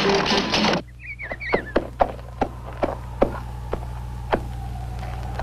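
Hooves clop on hard ground.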